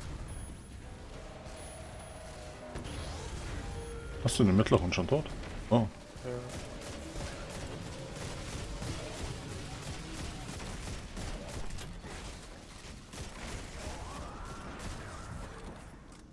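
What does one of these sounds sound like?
Gunfire and blasts ring out in a game's fight.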